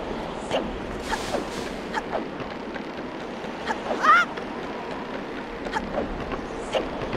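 Footsteps run across wooden planks.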